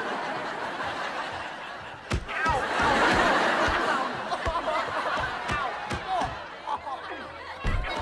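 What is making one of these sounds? A group of girls shriek and laugh together.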